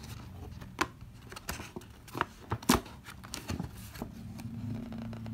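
A paper bag rustles and crinkles as a hand handles it.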